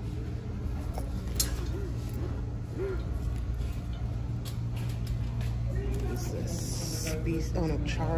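Hands rustle and brush against hanging bags.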